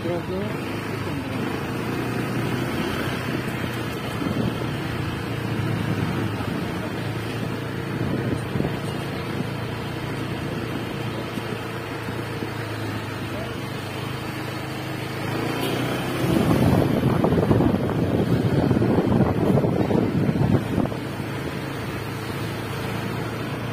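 A motor scooter engine hums steadily close by as it rides along a street.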